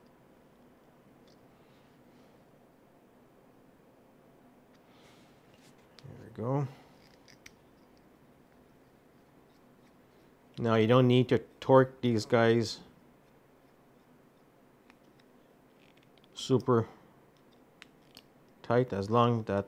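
Small plastic parts click and tap together as they are fitted by hand.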